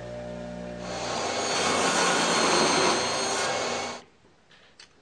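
A table saw whirs and cuts through wood with a loud whine.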